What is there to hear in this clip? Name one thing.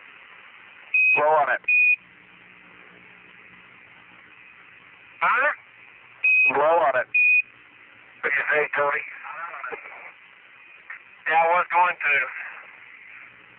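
A man speaks in short bursts over a crackly radio link.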